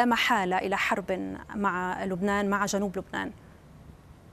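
A young woman speaks calmly into a microphone, reading out.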